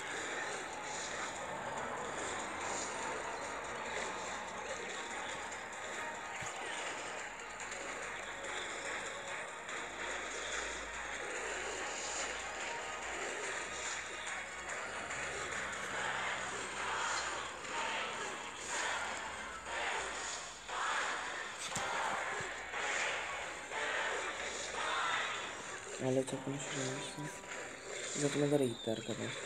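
Video game battle effects clatter and burst in quick succession.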